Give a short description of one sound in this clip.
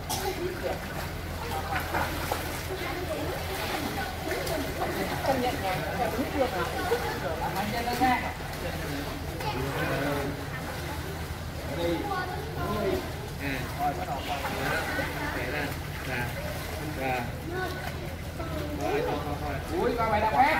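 Children shout and chatter nearby.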